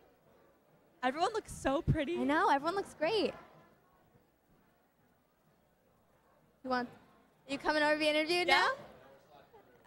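Young women speak with animation into handheld microphones.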